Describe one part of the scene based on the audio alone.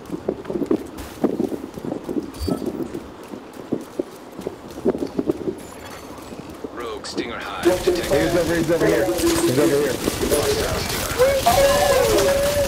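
Footsteps splash quickly on wet pavement.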